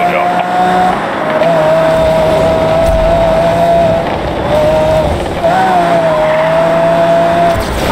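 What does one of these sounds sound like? Tyres skid on the road.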